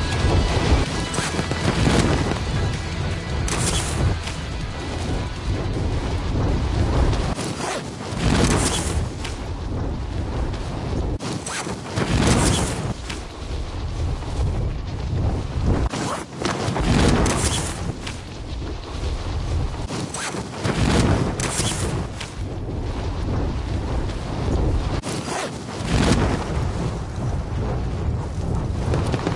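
Wind rushes loudly past during a fast freefall.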